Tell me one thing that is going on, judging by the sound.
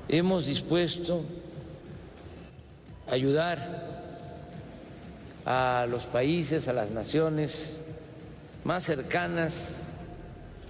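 An elderly man speaks calmly into a microphone, echoing in a large hall.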